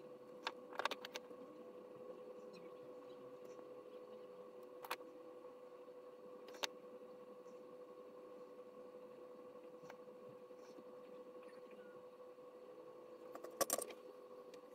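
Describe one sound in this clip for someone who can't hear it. A soldering iron touches a circuit board with faint clicks.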